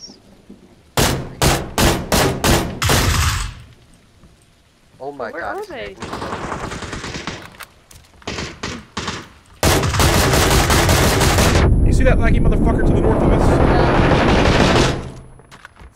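A rifle fires a quick series of loud shots.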